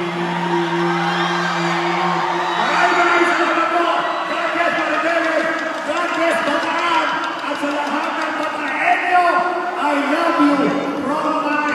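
A large crowd cheers and sings along loudly in a big echoing hall.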